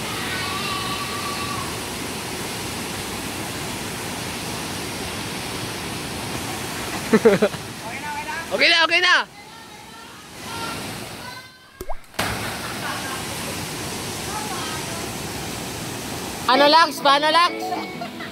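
Water rushes steadily down a waterfall.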